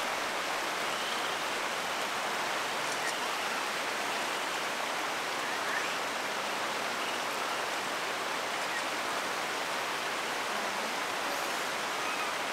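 Water in a hot spring flows and bubbles steadily.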